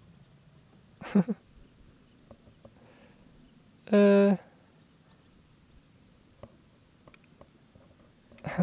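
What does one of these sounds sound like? A young man speaks a few short words close into a microphone.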